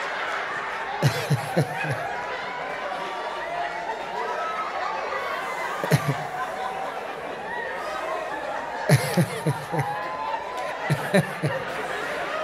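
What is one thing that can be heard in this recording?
A man talks loudly on a stage.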